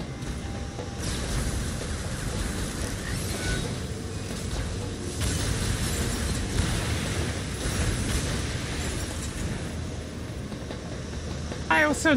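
Gunfire and explosions rumble and crackle.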